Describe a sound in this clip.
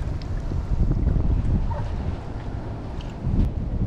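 A small fish splashes at the water's surface as it is reeled in.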